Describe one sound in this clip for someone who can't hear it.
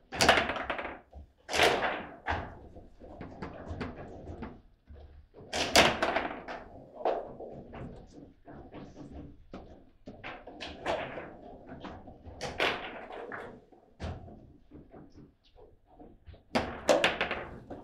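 Plastic players clack and knock as a ball is struck around a table football game.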